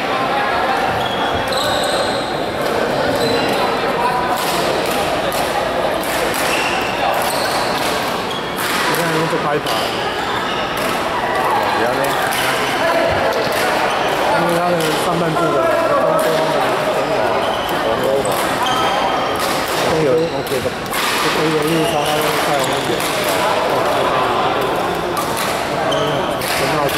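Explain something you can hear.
Players' voices chatter across a large echoing hall.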